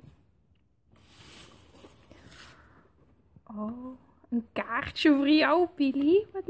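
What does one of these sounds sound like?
Paper rustles as a card is handled.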